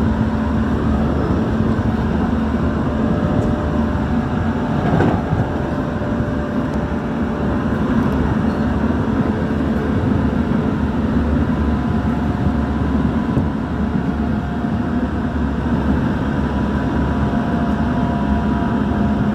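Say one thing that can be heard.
An electric commuter train rumbles along the track at speed, heard from inside the carriage.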